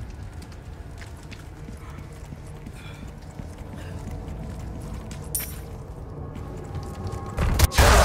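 Footsteps tread on stone steps and wooden boards.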